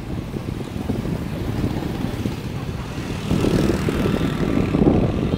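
Motorbike engines hum steadily in busy street traffic.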